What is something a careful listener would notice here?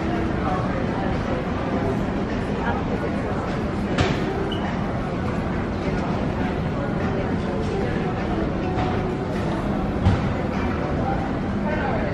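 People murmur and walk about in a large echoing hall.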